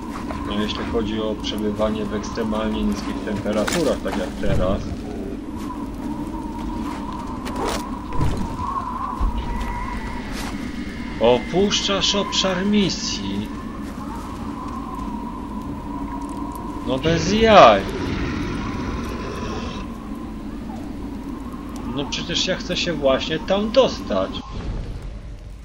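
A campfire crackles close by.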